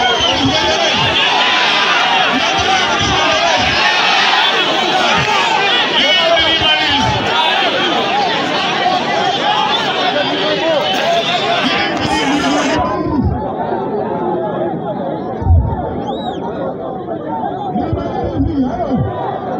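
A crowd of people shouts and talks noisily.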